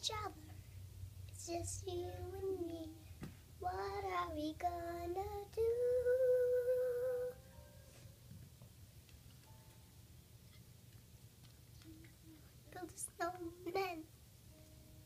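A young girl talks and sings close by, with animation.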